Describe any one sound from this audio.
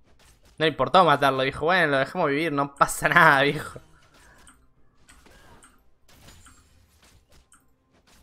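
Video game combat sound effects clash and zap.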